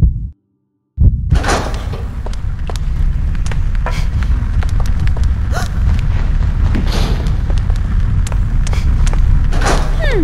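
A fire roars loudly.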